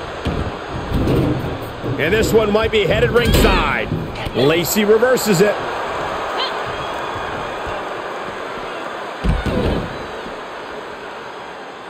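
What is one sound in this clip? Wrestlers' bodies thud hard against the floor.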